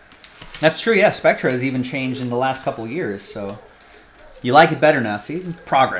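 Plastic wrappers crinkle in hands.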